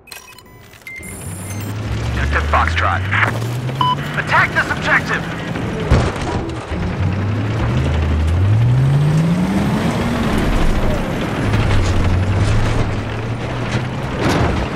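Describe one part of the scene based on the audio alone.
A helicopter engine hums loudly, rising and falling in pitch.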